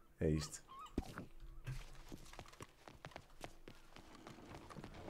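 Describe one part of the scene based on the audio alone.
Footsteps thud quickly on a wooden floor.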